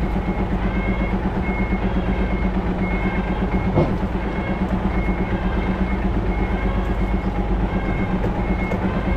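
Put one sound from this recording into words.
A truck's diesel engine rumbles steadily as it moves slowly.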